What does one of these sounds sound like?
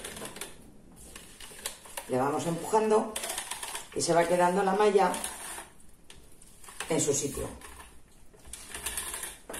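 A plastic netting rustles and scrapes as it is pulled over meat.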